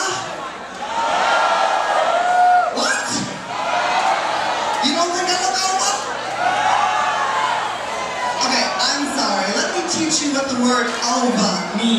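A woman sings into a microphone through loud speakers in a large hall.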